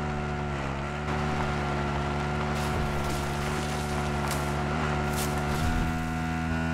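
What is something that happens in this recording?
A quad bike engine drones steadily as the bike rides along.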